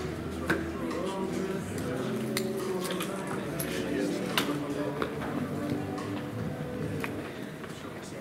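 People talk in the background of a large, echoing hall.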